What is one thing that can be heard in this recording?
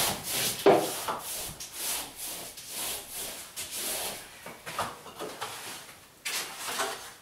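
A paperhanging brush swishes over wallpaper on a wall.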